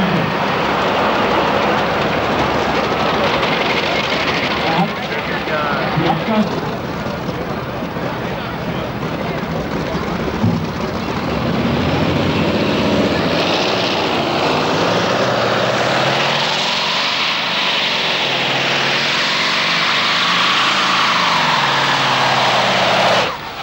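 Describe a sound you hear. A loud tractor engine roars and revs hard.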